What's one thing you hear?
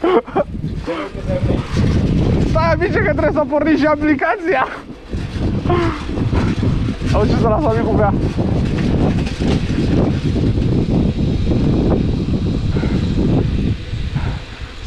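Wind buffets loudly as a bicycle rides along outdoors.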